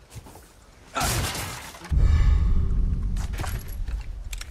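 A wooden crate smashes with a loud, booming crash.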